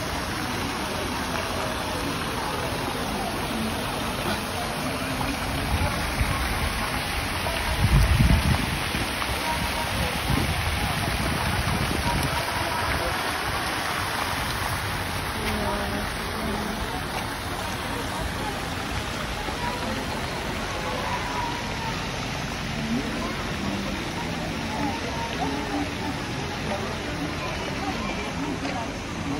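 Fountain water splashes steadily.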